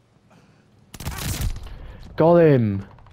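A rifle fires a burst of loud shots.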